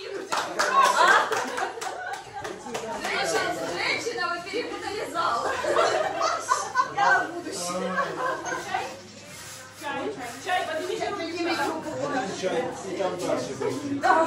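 Several adults talk and laugh together close by.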